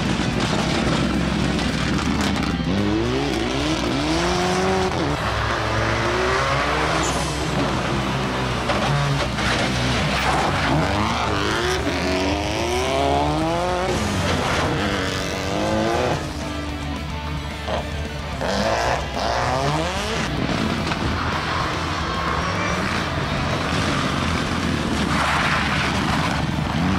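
A rally car engine roars and revs hard, rising and dropping through the gears.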